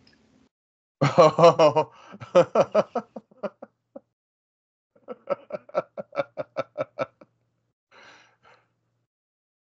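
A young man laughs heartily over an online call.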